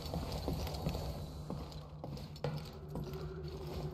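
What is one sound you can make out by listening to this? A sliding door hisses open.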